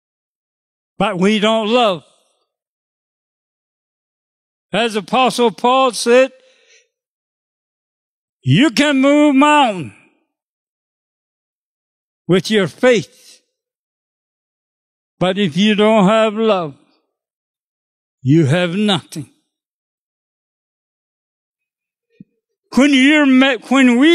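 An elderly man speaks slowly into a microphone, in short phrases with long pauses.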